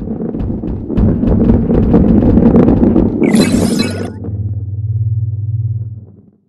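A heavy ball rolls along a wooden track with a low rumble.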